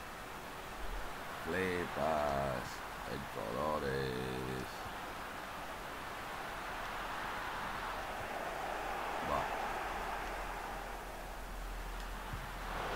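A large stadium crowd roars steadily in the background.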